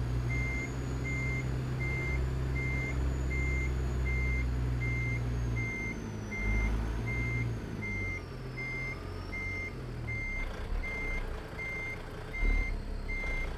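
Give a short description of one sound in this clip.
A diesel truck engine rumbles low and steady.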